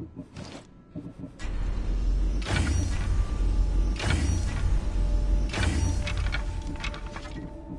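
Menu selections click and chime.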